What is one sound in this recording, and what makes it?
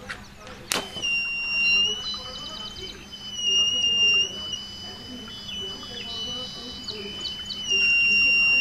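An electronic buzzer sounds a steady high tone.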